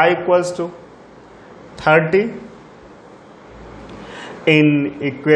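A man speaks calmly in short bursts, close by, with pauses between phrases.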